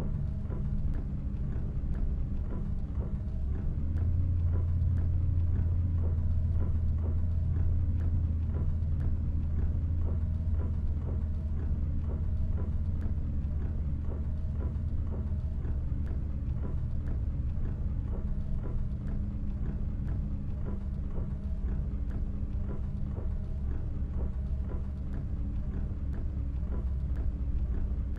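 Rain patters on the windscreen.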